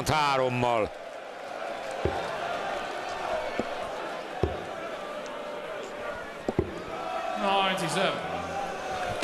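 A large crowd cheers and roars in a big hall.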